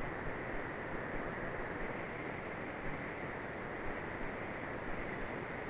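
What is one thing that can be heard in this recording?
A small propeller plane's engine drones steadily inside the cockpit.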